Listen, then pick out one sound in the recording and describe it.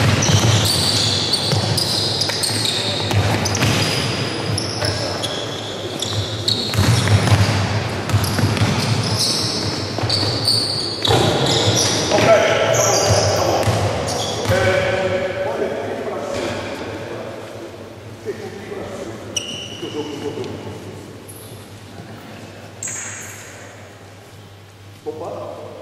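A crowd of young spectators chatters in the background.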